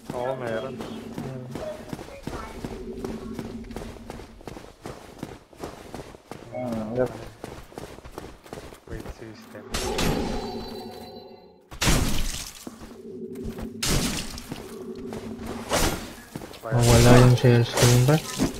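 Metal swords clang against each other in a fight.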